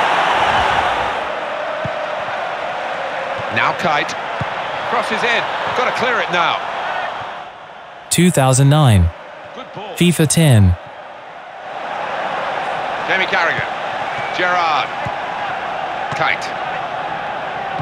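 A stadium crowd murmurs steadily during play.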